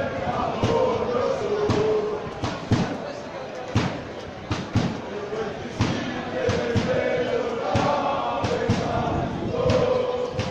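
A stadium crowd chants loudly in unison outdoors.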